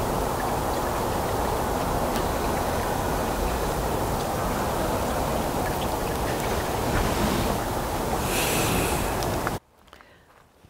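Water splashes steadily in a small garden fountain.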